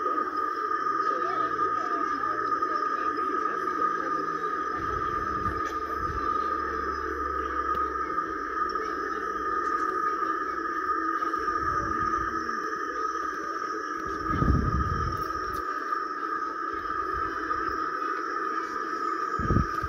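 Several overlapping sound tracks play at once through small loudspeakers in a dense, steady jumble.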